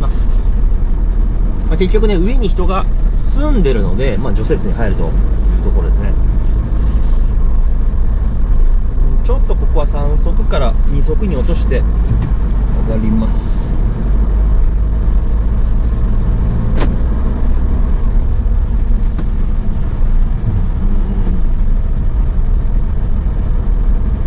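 A vehicle's engine rumbles low and steady.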